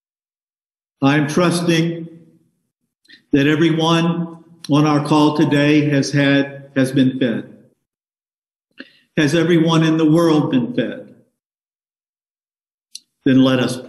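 An elderly man speaks calmly and slowly through a microphone.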